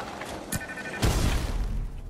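A crackling burst of electric energy roars.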